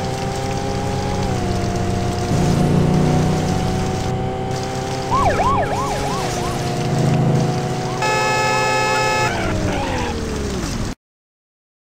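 A car engine drones at high revs, then winds down.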